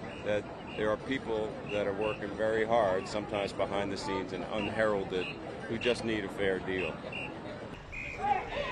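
A middle-aged man speaks calmly and closely into a microphone outdoors.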